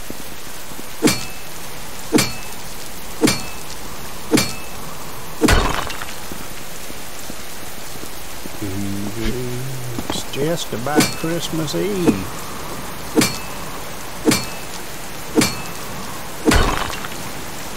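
A pickaxe strikes rock with sharp, ringing clanks, again and again.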